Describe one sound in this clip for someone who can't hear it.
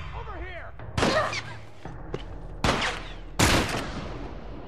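A shotgun fires loudly several times.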